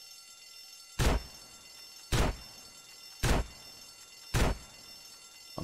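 Footsteps thud heavily on a wooden floor at a steady pace.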